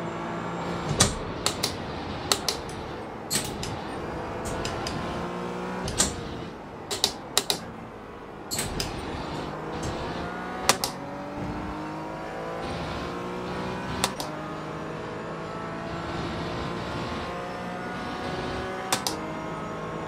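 Sharp clicks of gear shifts snap now and then.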